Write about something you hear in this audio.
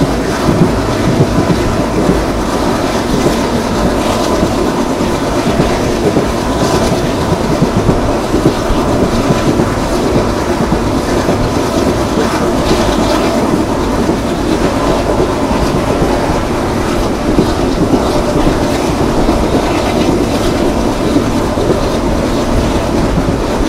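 Wind rushes past a moving train.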